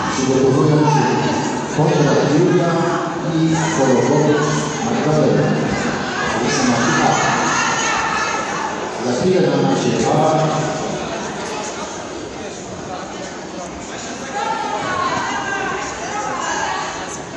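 Men and women talk in the background of a large echoing hall.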